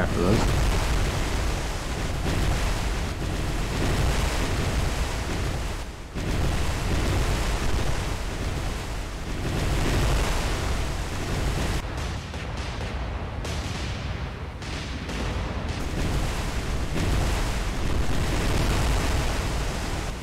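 Shells splash into rough sea water.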